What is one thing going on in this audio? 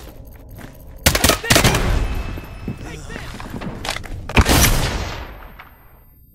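Gunshots crack loudly and echo.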